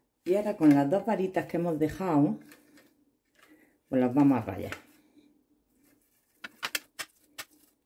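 A metal grater scrapes as cheese is rubbed across it.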